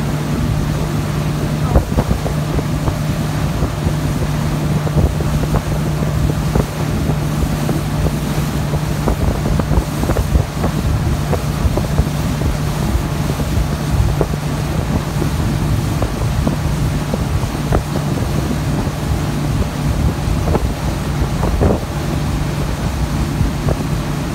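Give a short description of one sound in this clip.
A motorboat engine drones steadily close by.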